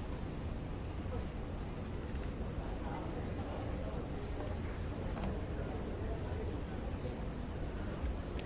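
A crowd of men murmurs and talks quietly in a large room.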